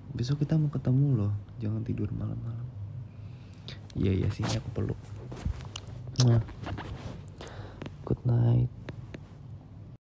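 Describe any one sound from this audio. A teenage boy speaks sleepily over an online call.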